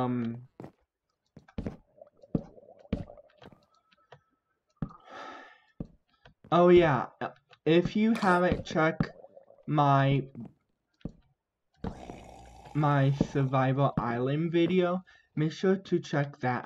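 Wooden blocks are placed with short, soft knocks.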